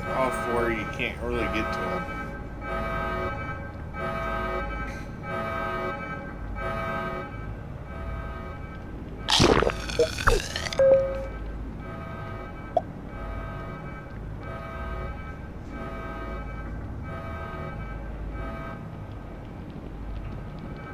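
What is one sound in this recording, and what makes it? Electronic game music plays in a steady pulsing rhythm.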